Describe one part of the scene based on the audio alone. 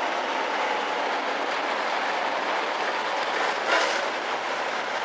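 Race car engines roar steadily.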